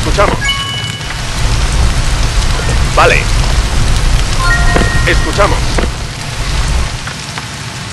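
Flames roar and crackle.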